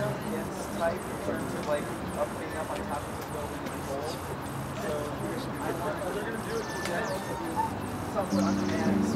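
A double bass is plucked in low notes.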